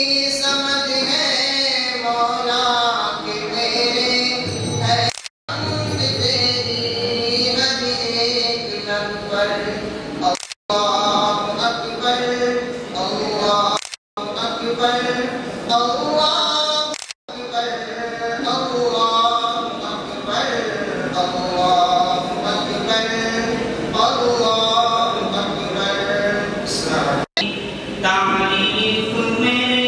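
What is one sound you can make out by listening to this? A man speaks with animation into a microphone, heard through loudspeakers in an echoing hall.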